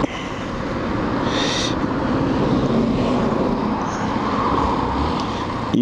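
A motorcycle engine hums steadily close by.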